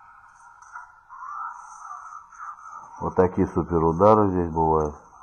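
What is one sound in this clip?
Video game sound effects play tinnily through a small phone speaker.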